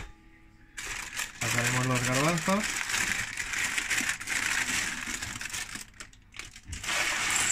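Parchment paper crinkles and rustles as it is lifted.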